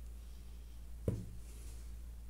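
A plastic paint pot lid snaps shut with a click.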